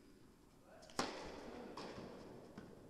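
A tennis racket strikes a ball with a sharp pop that echoes through a large hall.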